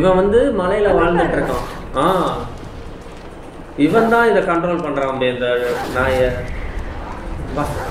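A young man talks with animation into a headset microphone.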